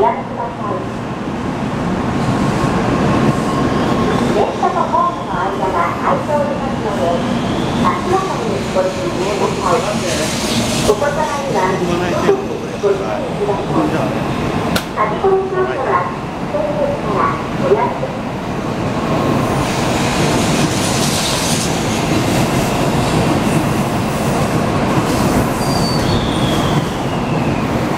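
A high-speed train rushes past close by with a loud, steady roar.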